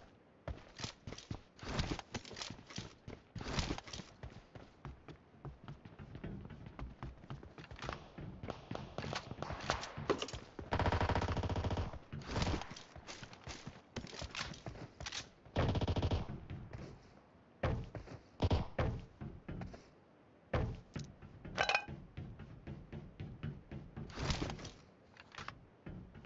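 Footsteps thud quickly on metal.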